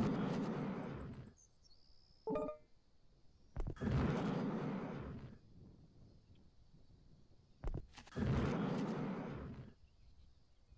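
A jet thruster roars in short bursts.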